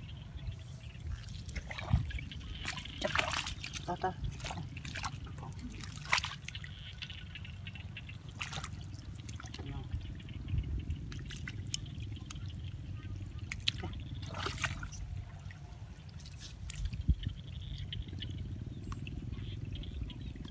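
Hands dig and squelch in wet mud.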